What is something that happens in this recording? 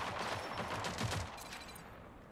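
Quick footsteps patter on a hard floor.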